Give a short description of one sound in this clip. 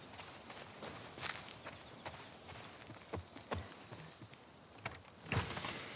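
Footsteps thud on wooden porch steps.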